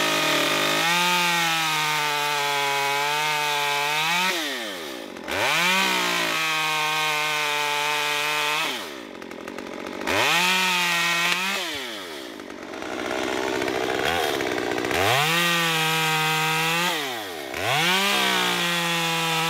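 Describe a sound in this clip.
A chainsaw engine runs loudly, revving high and dropping back to idle several times.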